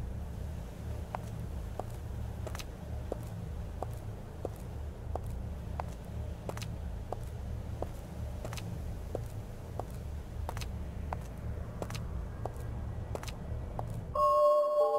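Footsteps tap at an even pace on a hard surface.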